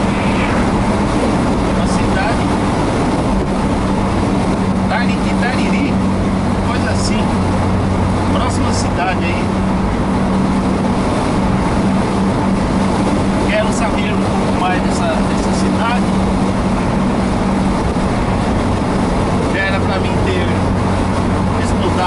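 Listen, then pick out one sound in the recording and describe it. A car engine hums from inside as the car cruises along a highway.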